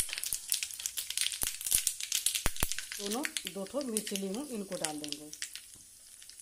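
Seeds crackle and pop in hot oil.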